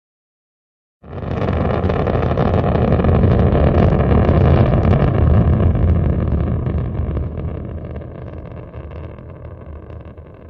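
A rocket engine roars, then slowly fades.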